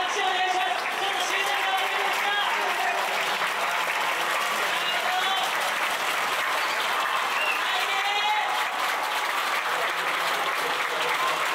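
A large crowd cheers and shouts in an open stadium.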